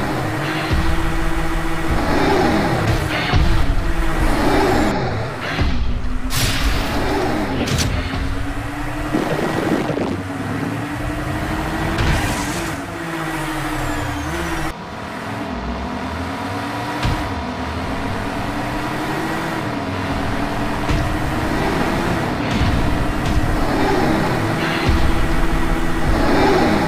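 A toy race car's engine hums and whines steadily, rising and falling in pitch.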